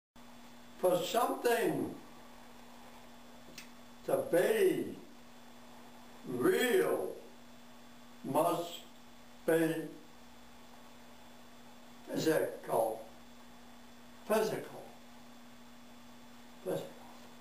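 An elderly man speaks slowly in short phrases with long pauses.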